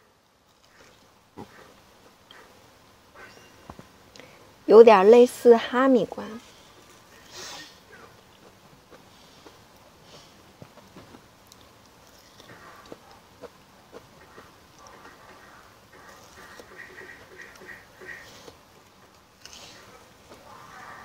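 A young woman bites and chews soft food close to a microphone.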